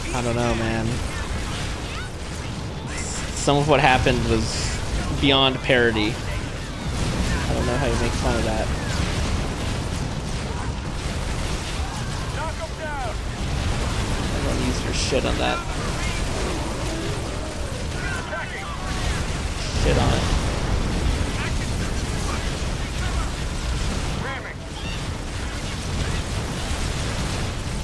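Guns fire rapidly in a battle.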